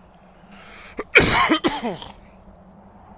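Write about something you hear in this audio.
A man coughs loudly, close to a microphone.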